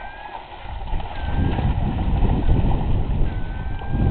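A bear splashes quickly through shallow water.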